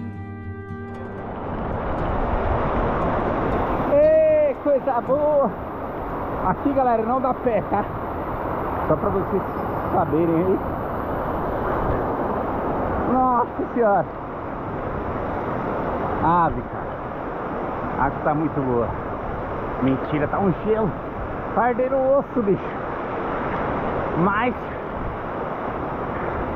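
A waterfall rushes and splashes nearby.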